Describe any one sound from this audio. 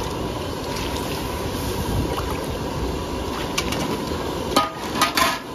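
A metal ladle scrapes and clanks against a wok.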